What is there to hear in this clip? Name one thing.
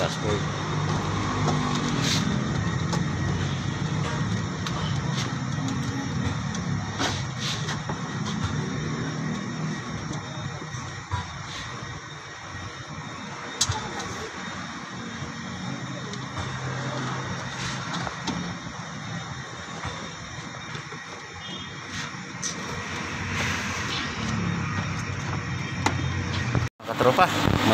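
Hard plastic parts click and knock close by.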